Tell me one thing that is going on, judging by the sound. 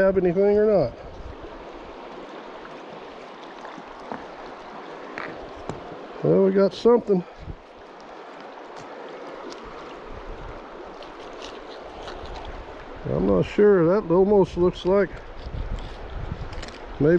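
A river flows and gurgles nearby.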